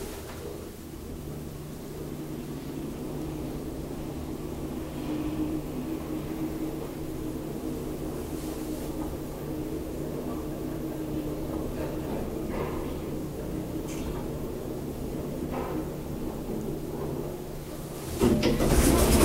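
An elevator motor hums steadily while the car moves.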